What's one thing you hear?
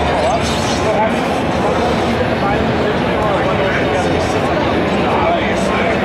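Gunshots from a video game play through loudspeakers.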